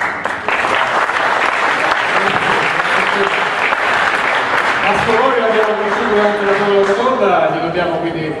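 An audience applauds steadily in a room.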